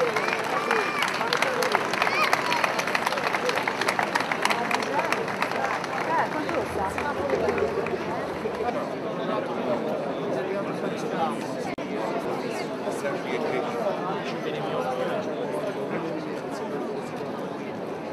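A crowd of men and women chatter outdoors nearby.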